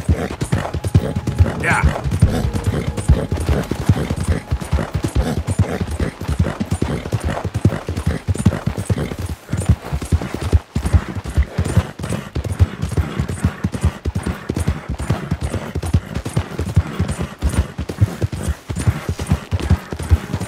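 A horse gallops fast, its hooves thudding on a dirt path.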